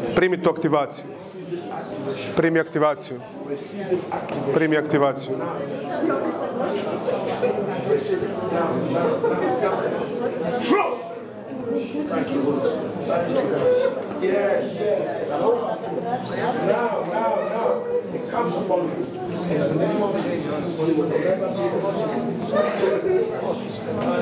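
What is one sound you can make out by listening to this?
A man speaks with animation through a microphone in an echoing room.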